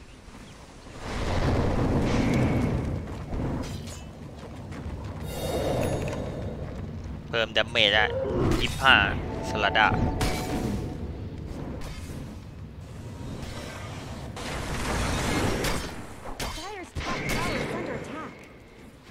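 Magic blasts and clashing effects burst out during a fight.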